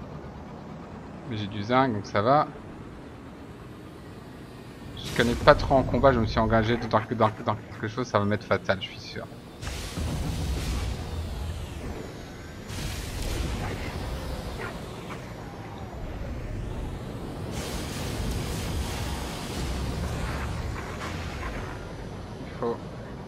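A spaceship engine roars and rumbles steadily.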